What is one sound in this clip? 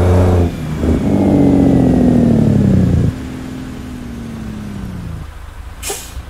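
A heavy truck engine roars and then slows down, dropping in pitch.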